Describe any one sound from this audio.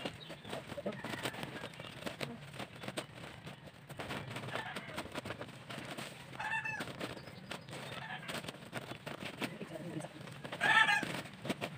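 A plastic sack rustles and crinkles as it is handled.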